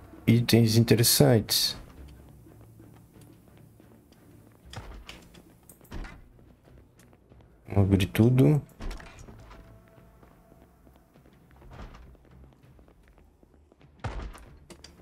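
Footsteps thud softly on a wooden floor and stairs.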